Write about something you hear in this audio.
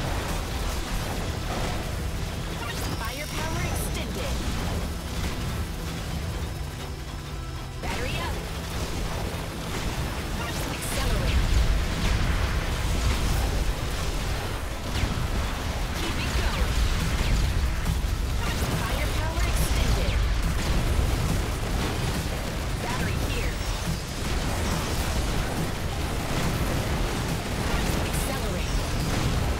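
Electronic game music plays with a steady beat.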